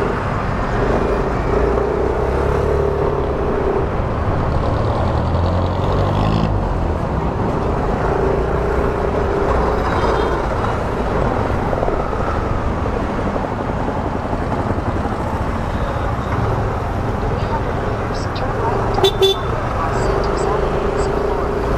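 Traffic rumbles all around in a busy street.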